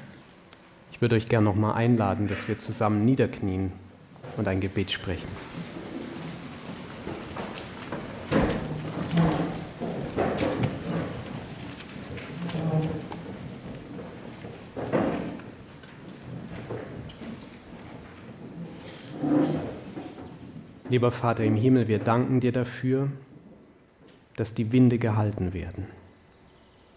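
A man speaks into a microphone over loudspeakers in a large echoing hall, with pauses between phrases.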